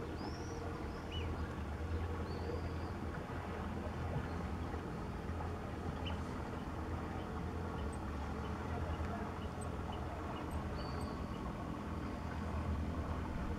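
A motorboat engine hums steadily across open water.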